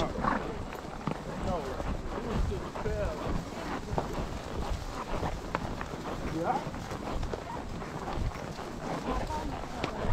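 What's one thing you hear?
Horse hooves thud and clop on a dirt trail.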